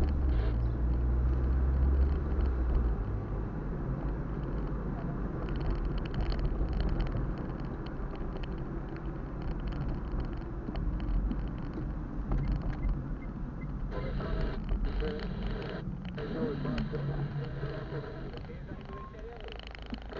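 Tyres roll on a road surface.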